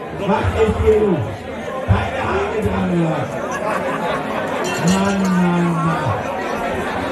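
A man shouts loudly over the crowd.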